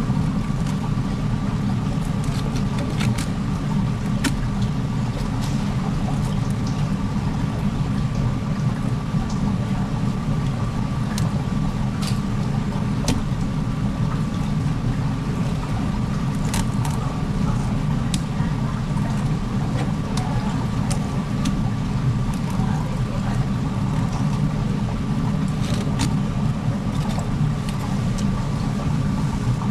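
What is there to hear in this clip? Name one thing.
A knife taps and scrapes against a cutting board.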